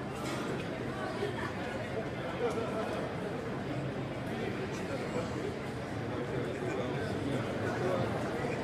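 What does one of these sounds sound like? A crowd of people chatters close by in a large echoing hall.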